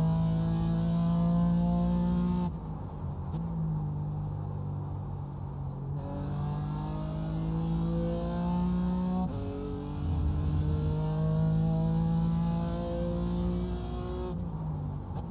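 A racing car engine roars, rising in pitch and dropping sharply as the gears change.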